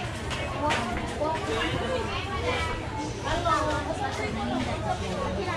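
A crowd of shoppers chatters in a busy, echoing market hall.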